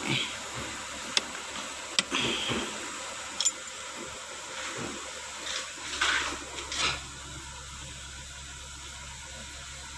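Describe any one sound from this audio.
Switches click several times.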